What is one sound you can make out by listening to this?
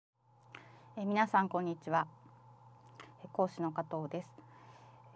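A woman speaks calmly and clearly into a close microphone.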